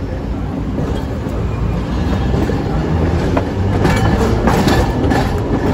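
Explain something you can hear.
A tram rumbles steadily along its tracks.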